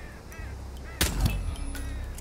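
A gunshot cracks once, loud and sharp.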